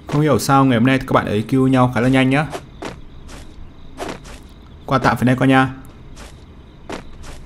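Footsteps run across grass.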